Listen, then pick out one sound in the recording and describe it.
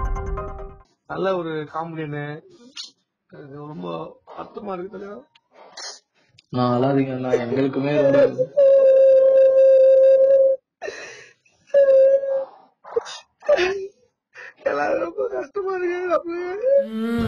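Another young man answers over a phone line.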